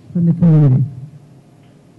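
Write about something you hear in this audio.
A man speaks briefly through a microphone in a large echoing room.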